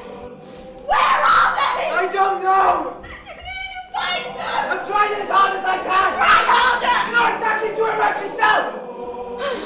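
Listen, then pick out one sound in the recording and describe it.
Young people speak with animation.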